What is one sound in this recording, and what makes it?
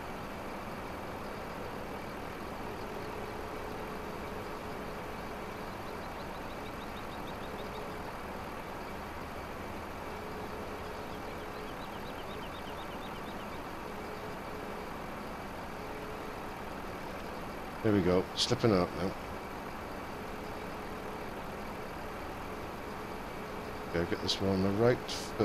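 A hydraulic crane whines as it swings and lifts logs.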